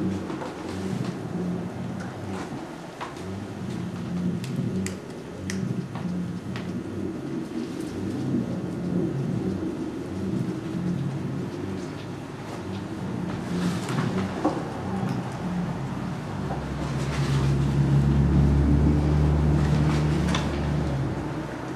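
Objects clatter and rustle as a case is rummaged through.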